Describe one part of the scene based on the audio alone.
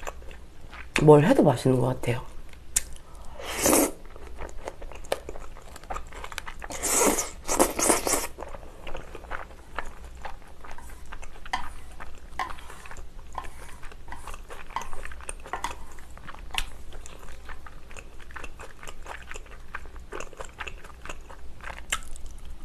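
A young woman chews food with wet, smacking sounds up close.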